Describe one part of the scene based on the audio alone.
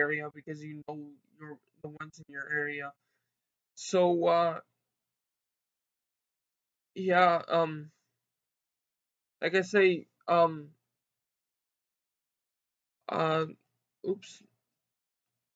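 A young man speaks calmly close to a microphone, in short bursts with pauses.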